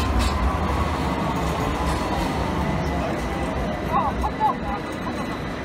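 A tram rumbles past nearby.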